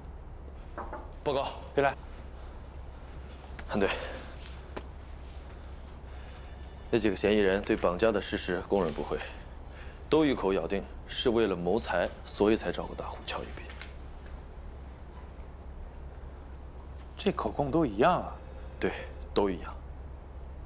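A man speaks calmly in a low voice nearby.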